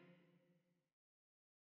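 An acoustic guitar chord rings out and quickly fades.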